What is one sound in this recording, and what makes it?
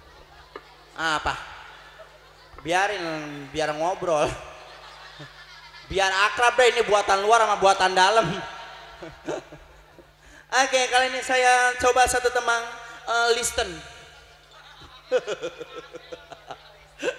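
A young woman sings loudly through a microphone and loudspeakers, in short phrases.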